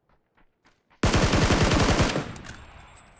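A rifle fires a rapid burst of loud shots that echo away.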